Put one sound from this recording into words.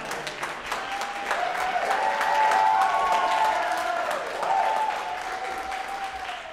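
A saxophone plays a melody.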